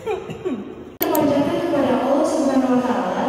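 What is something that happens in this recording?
A young woman speaks through a microphone over loudspeakers.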